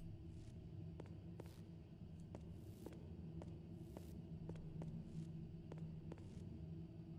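Footsteps echo on a hard stone floor.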